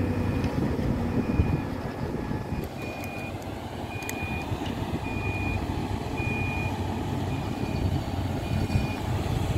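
A heavy diesel engine rumbles steadily as a road grader drives closer.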